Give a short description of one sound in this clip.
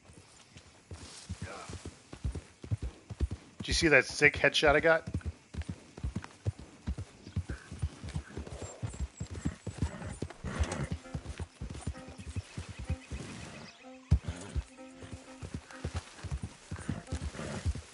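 A horse's hooves thud steadily on a dirt trail.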